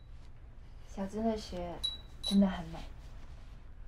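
A young woman speaks warmly and cheerfully nearby.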